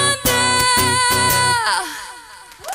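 A young woman sings loudly and powerfully into a microphone.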